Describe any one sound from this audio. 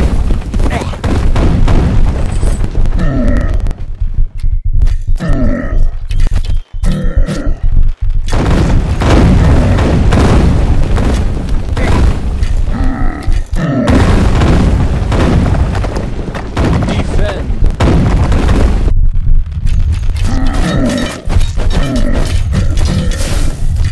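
Weapons clash and thud in a crowded battle.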